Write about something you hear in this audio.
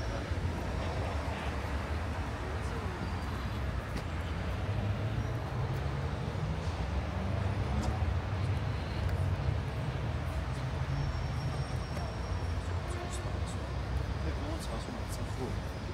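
People walk past on pavement with soft footsteps.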